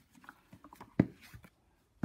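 A hardcover book knocks softly as it is set down.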